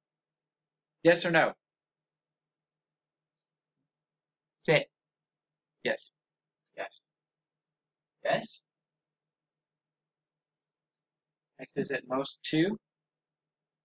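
A man speaks calmly and close by, in short phrases with long pauses.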